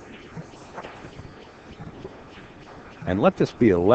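Billiard balls clack against each other.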